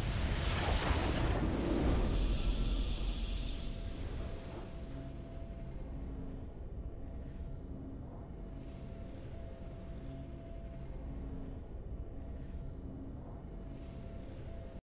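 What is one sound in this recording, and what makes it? Triumphant game music plays with a low steady drone.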